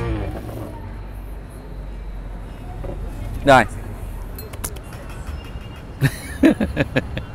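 A man talks close by in short bursts.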